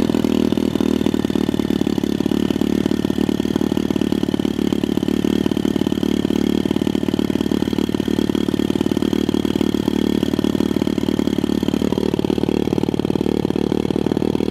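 A small motorbike engine idles steadily close by.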